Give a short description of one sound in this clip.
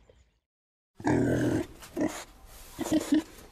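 Piglets squeal and grunt loudly.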